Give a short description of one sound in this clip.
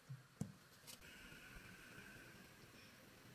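Thick liquid bubbles and simmers in a pot.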